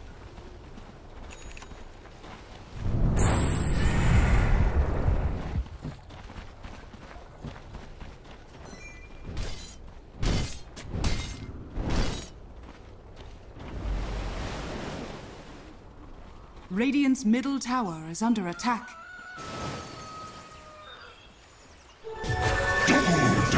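Game battle effects of spells and blows burst out in bursts.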